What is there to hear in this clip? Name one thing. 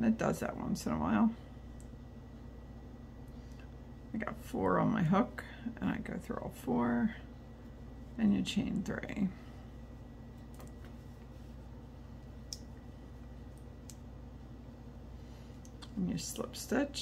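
Yarn rustles softly as a crochet hook works through it.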